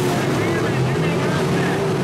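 A crowd murmurs nearby.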